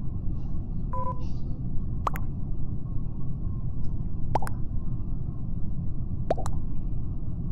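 Short electronic pops sound as chat messages arrive.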